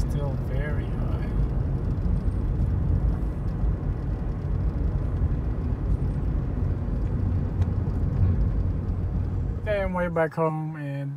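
A car's engine and tyres rumble steadily on the road.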